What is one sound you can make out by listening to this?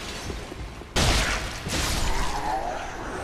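Fire bursts with a loud roar.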